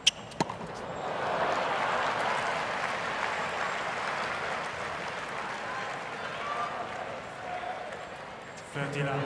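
A large crowd applauds and cheers outdoors.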